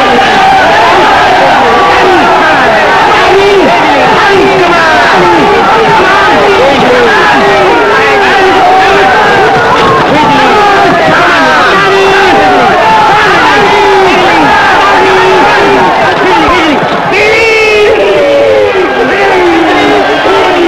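A crowd of men cheer and shout excitedly.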